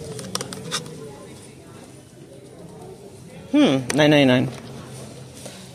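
A card packet rustles as a hand handles it.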